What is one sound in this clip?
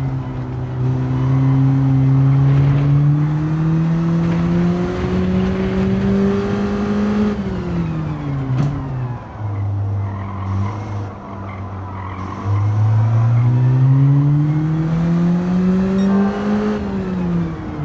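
A racing car engine roars at high revs, rising as it accelerates.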